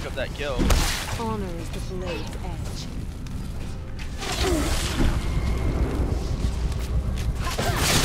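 Spells and blasts burst and crackle in a fast fantasy battle.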